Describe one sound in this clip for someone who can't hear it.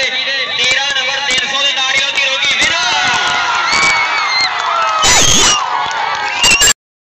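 A large crowd of men shouts and cheers loudly outdoors.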